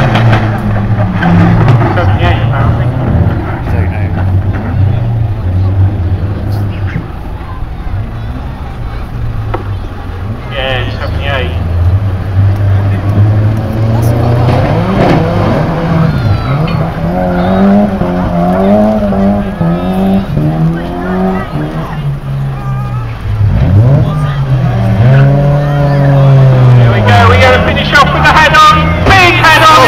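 Racing car engines roar and rev around a dirt track.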